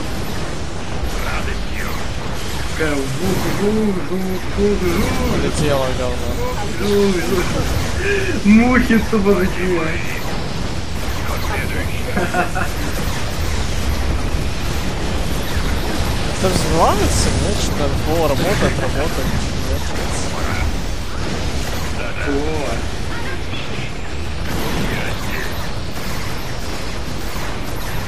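Explosions and gunfire from a game battle boom and crackle constantly.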